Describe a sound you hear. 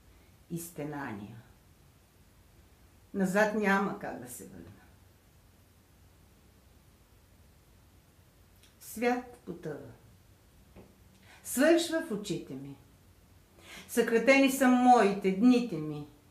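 A middle-aged woman speaks calmly and close up, in short phrases with pauses.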